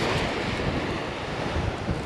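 A fishing reel clicks as its handle is turned.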